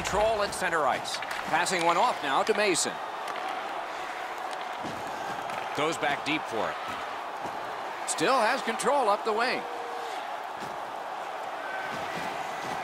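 A crowd murmurs in a large arena.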